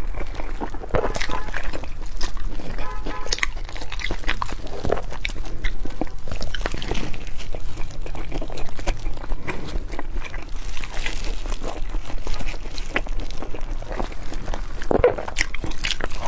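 Crisp food crunches and crackles in close bites.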